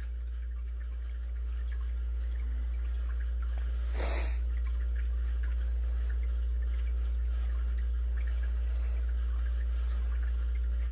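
A dog sniffs and licks at something close by.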